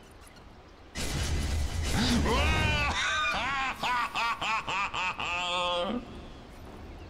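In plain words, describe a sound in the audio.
Magic spell effects whoosh and chime.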